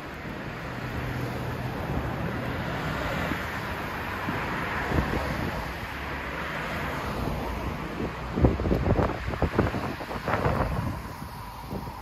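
Cars drive past close by on a road, their tyres swishing on the asphalt.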